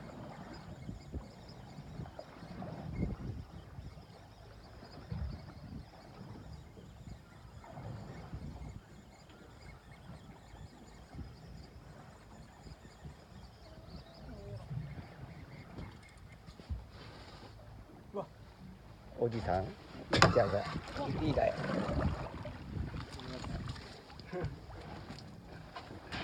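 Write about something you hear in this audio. Waves lap against a boat's hull.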